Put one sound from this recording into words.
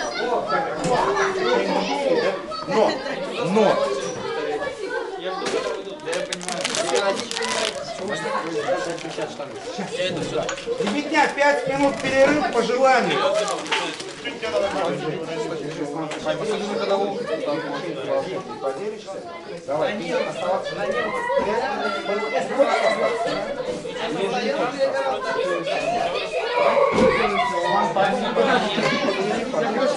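Several people talk at once nearby in an echoing room.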